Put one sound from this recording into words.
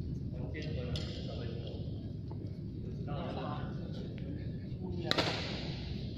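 A badminton racket strikes a shuttlecock in a large echoing hall.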